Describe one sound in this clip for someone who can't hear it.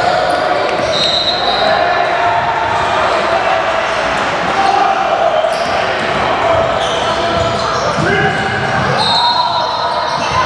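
Sneakers squeak sharply on the floor.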